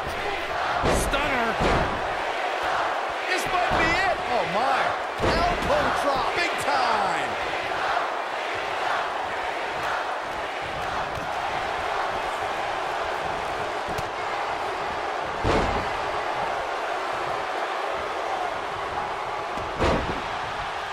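Heavy bodies slam onto a wrestling mat with loud thuds.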